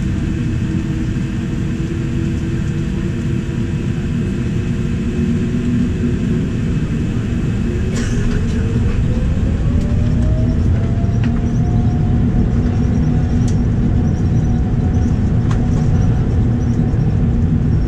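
Wheels rumble and thump over the runway.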